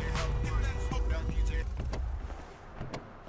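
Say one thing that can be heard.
A car engine rumbles and then cuts off.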